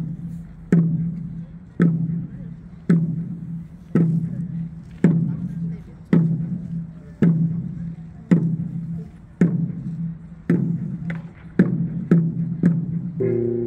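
A large drum booms in a slow, steady beat.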